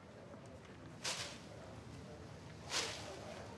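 A paper wand swishes and rustles sharply through the air twice.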